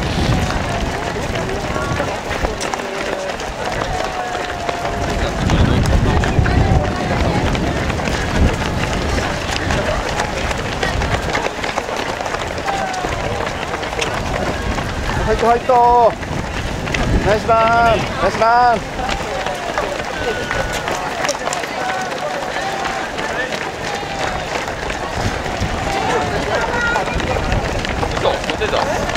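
A crowd of spectators cheers and calls out nearby, outdoors.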